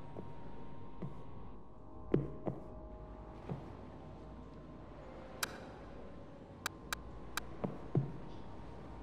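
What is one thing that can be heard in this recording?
Footsteps thud slowly on wooden boards.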